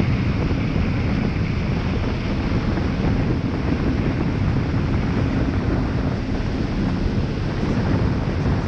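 A boat's engine roars steadily as the boat speeds over water.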